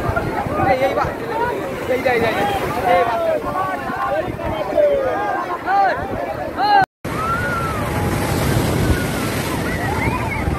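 Waves crash and wash over the shore.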